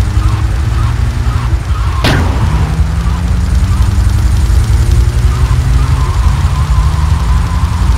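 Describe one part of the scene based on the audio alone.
A van engine roars steadily as it drives fast.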